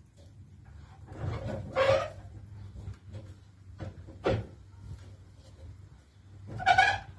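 A power saw clanks and scrapes as a man handles it.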